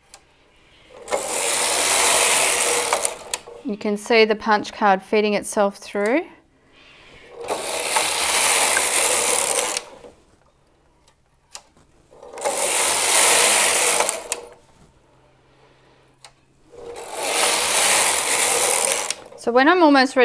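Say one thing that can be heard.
A knitting machine carriage slides across with a loud rushing swish.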